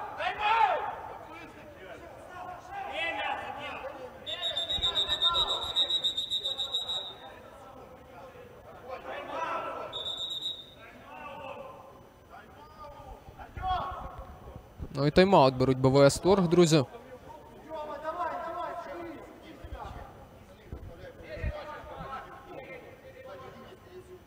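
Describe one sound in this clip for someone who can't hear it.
Men shout and call out across an echoing indoor hall.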